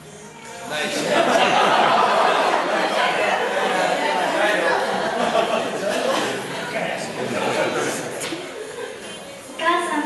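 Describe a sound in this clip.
A crowd of guests laughs loudly in an echoing room.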